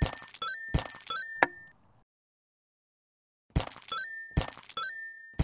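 Bright electronic chimes and pops ring out in quick bursts.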